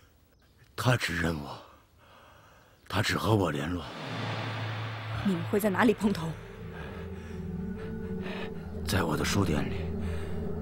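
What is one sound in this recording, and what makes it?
A wounded man speaks weakly and breathlessly, close by.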